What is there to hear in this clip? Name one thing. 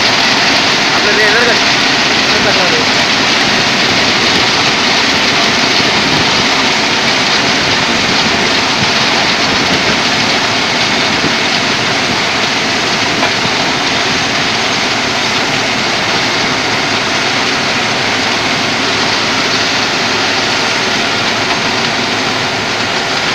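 A heavy rail machine rumbles and clatters loudly along the track close by.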